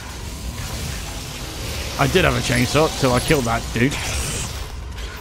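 A monster roars and snarls up close.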